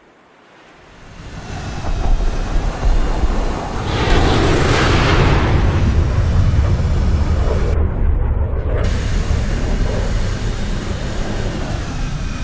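A jet engine roars loudly.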